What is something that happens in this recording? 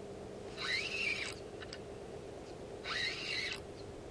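A spinning reel whirs as its handle is cranked.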